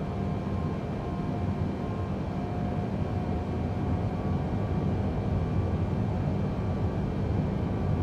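Jet engines rumble steadily inside a cockpit.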